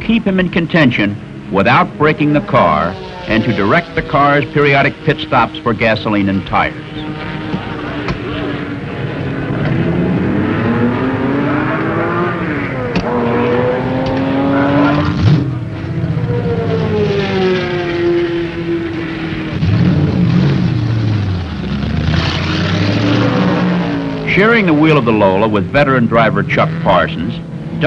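A race car engine roars and revs up and down.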